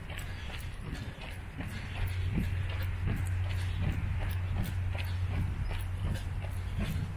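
Running footsteps thud steadily on a paved path.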